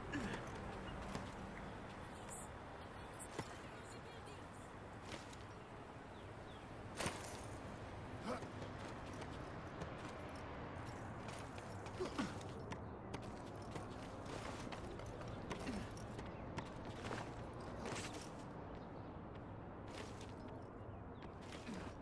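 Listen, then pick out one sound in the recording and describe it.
Hands grab and scrape on stone ledges as a man climbs.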